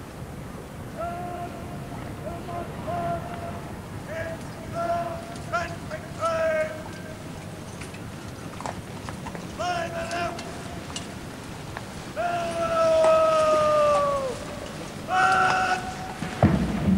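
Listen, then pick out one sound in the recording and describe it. A man shouts long, drawn-out words of command across an open parade ground.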